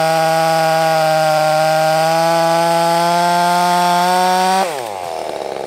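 A chainsaw cuts through a log with a steady, high whine.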